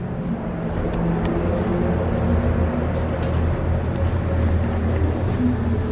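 Elevator doors slide shut.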